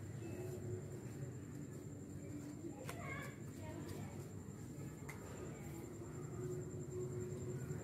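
A paper card crinkles and rustles as it is unfolded.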